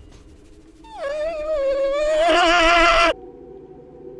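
A young man screams loudly into a close microphone.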